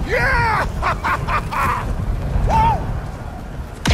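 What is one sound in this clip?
A young woman laughs joyfully.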